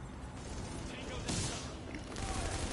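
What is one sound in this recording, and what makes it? An explosion booms with a sudden blast.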